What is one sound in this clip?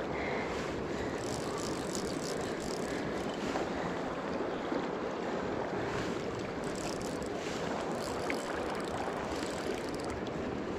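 A river rushes and gurgles close by.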